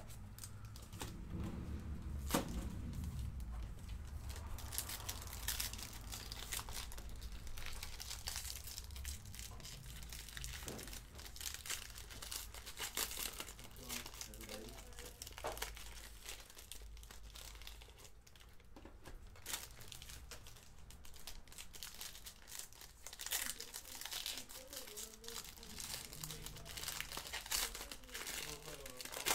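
Foil wrappers crinkle and tear up close.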